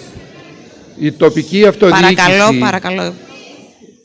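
An elderly man speaks through a microphone in a formal, measured voice.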